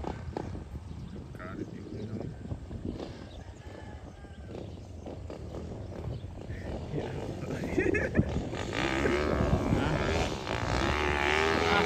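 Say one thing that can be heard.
A dirt bike engine buzzes at a distance, rising in pitch as it revs.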